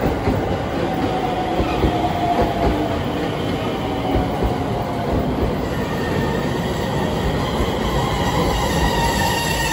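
Train wheels squeal faintly against the rails.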